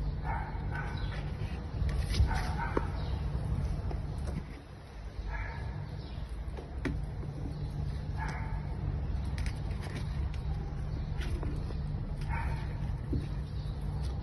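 Small kittens mew in short, high cries close by.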